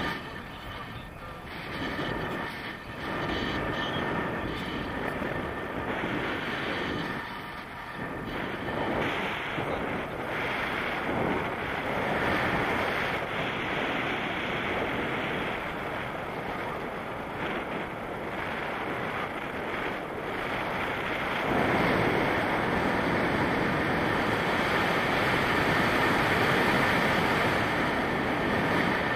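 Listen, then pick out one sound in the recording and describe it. Strong wind rushes and buffets against a microphone outdoors.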